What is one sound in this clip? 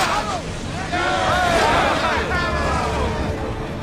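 A burning missile bursts against a ship with a crackle of flames.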